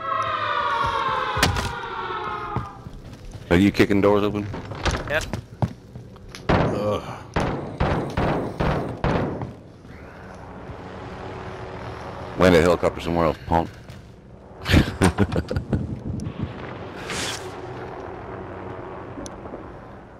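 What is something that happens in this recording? Footsteps thud on wooden floors and stone.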